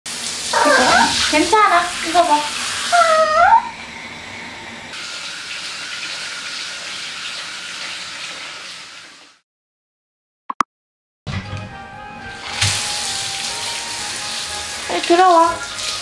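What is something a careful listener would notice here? Water sprays steadily from a shower head.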